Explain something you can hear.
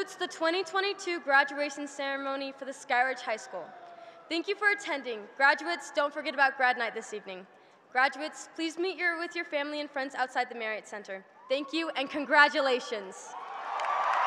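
A young woman speaks calmly into a microphone in a large echoing hall.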